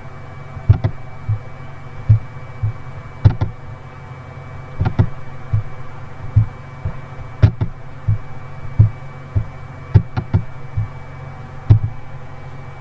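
A computer mouse clicks repeatedly.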